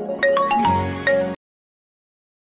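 A phone ringtone plays a short tune.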